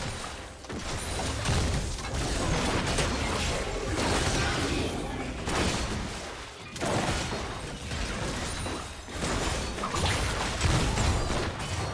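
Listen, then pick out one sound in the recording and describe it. Magic spell effects crackle and burst in a fast fight.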